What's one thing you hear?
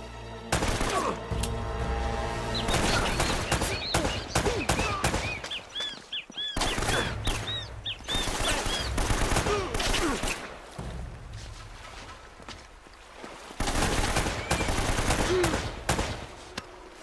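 A pistol fires in rapid shots.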